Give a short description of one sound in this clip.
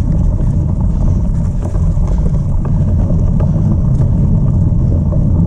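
Bicycle tyres crunch over a bumpy dirt trail.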